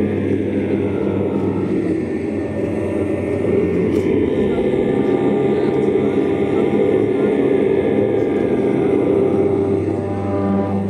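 Loud electronic music with a steady low pulse plays throughout.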